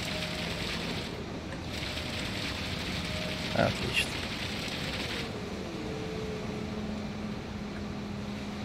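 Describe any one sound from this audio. A crane's motor hums steadily as its arm swings.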